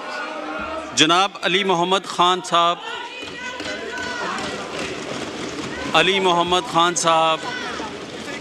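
Men shout slogans loudly in a large hall.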